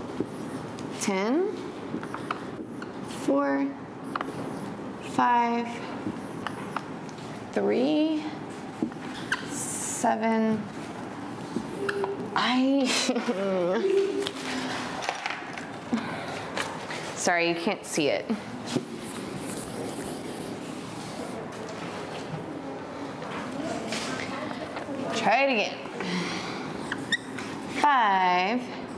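A young woman talks clearly in short phrases, close by.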